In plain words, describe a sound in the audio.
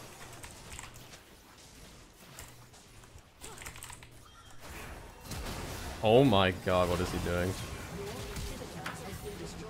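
Magic blasts whoosh and crackle in a fast battle.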